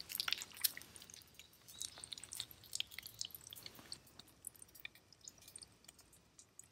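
An egg sizzles and crackles as it fries in a pan.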